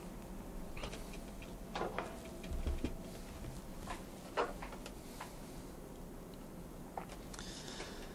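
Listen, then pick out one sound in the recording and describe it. Plastic knocks softly as a man handles a microscope.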